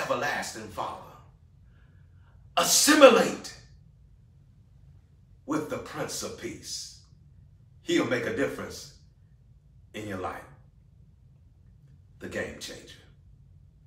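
A middle-aged man speaks close to a microphone, in short bursts with pauses.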